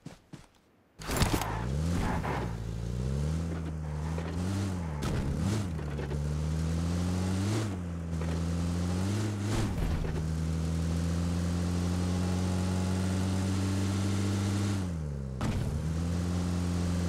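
A car engine roars and revs as the vehicle drives off.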